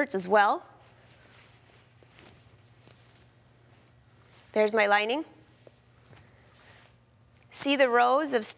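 A woman speaks calmly, close to a microphone.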